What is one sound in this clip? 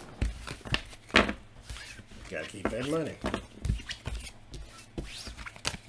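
Cards riffle and flick as a deck is shuffled.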